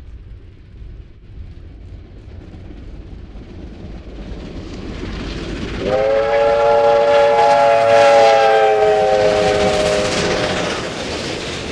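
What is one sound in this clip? A steam locomotive chuffs heavily as it approaches and grows louder.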